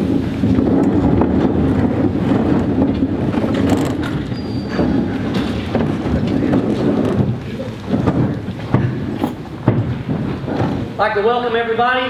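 A crowd of people murmurs and chatters in a large room.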